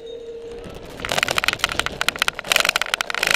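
A bicycle rattles and clatters as it bumps over rough grass.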